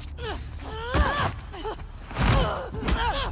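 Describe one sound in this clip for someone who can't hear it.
Heavy thuds sound as two people scuffle.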